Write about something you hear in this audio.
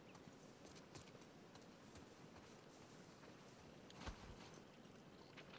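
Footsteps crunch softly through grass and wet ground.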